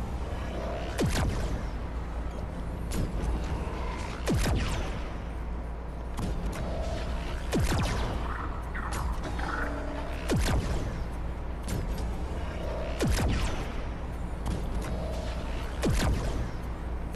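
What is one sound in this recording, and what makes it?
Sharp whooshing blasts sweep past every few seconds.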